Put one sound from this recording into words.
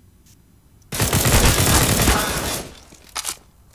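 A rifle fires loudly.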